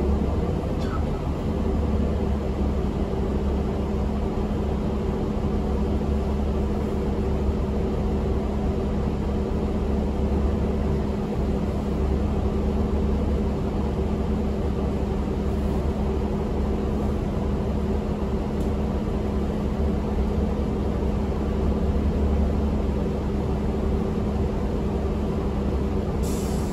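A bus rattles and vibrates as it drives along.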